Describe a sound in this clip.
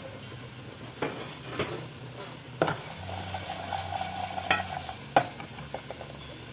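A metal spatula scrapes and clatters against a pot.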